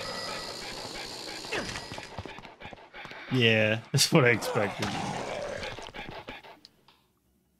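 Zombies groan and moan nearby.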